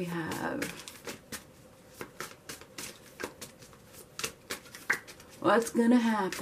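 Cards are shuffled by hand with soft, quick riffling clicks.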